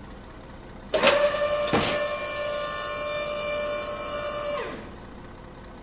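A hydraulic motor whines steadily as metal ramps unfold.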